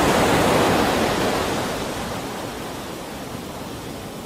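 A boat engine hums.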